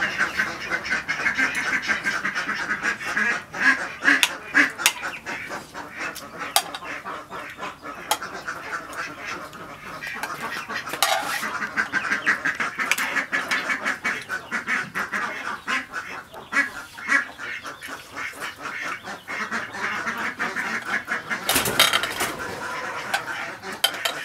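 A young woman chews food noisily close by.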